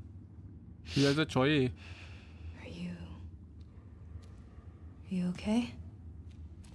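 A young woman asks hesitantly in a soft voice.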